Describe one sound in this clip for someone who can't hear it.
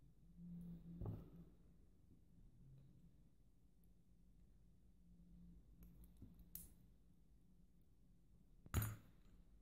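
Small metal parts click and tap as they are fitted together by hand.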